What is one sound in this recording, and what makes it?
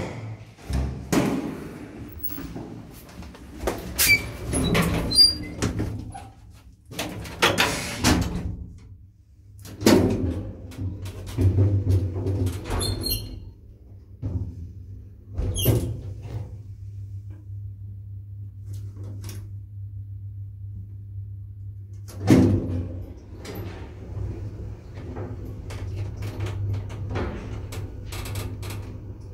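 An elevator hums steadily as it runs.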